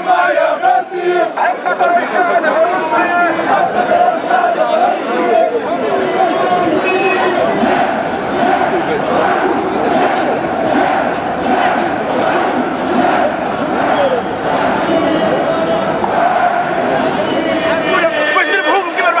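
A large crowd of men chants loudly outdoors.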